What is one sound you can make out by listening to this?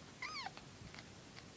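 A kitten mews briefly in a high, thin voice.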